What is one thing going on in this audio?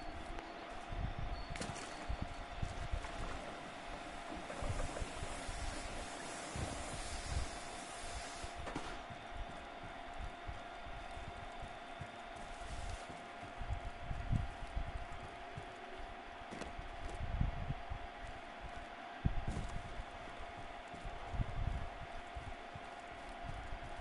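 Footsteps thud quickly on grass.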